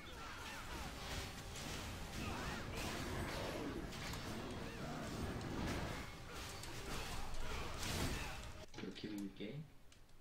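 Game battle effects clash and boom with spells and strikes.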